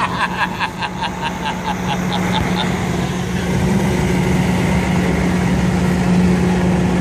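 A truck engine idles with a steady low rumble close by.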